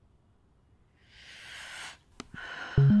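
A young woman sighs.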